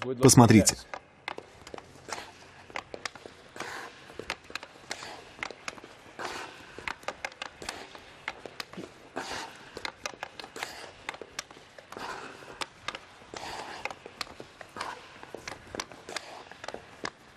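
Skate blades scrape and hiss across ice.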